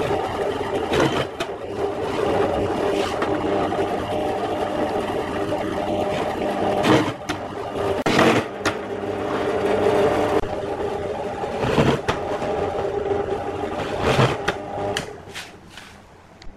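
A drill press whirs loudly and steadily.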